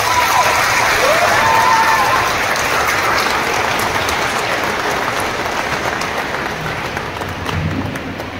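A large crowd claps and cheers in an echoing hall.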